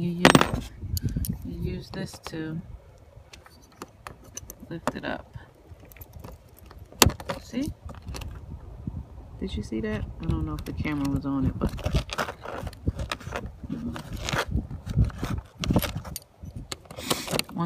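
A plastic pry tool scrapes and clicks against a plastic clip.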